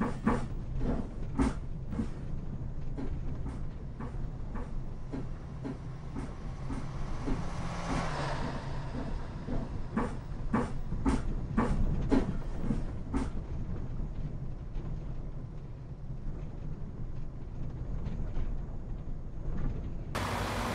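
A bus engine drones steadily.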